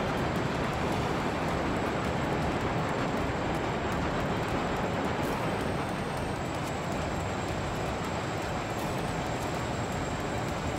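A plane's engines drone steadily.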